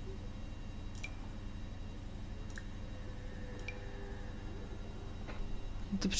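Magical sparkles twinkle and chime softly.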